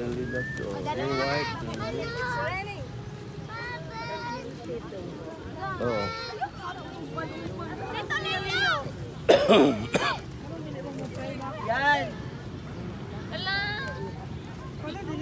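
Young girls squeal with delight.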